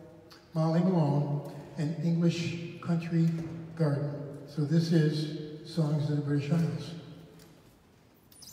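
An elderly man speaks calmly through a microphone and loudspeaker in an echoing hall.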